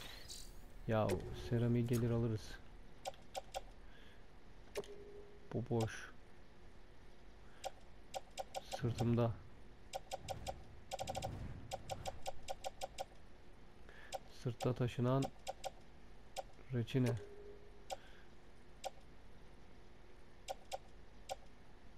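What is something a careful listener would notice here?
Short electronic menu clicks tick in quick runs.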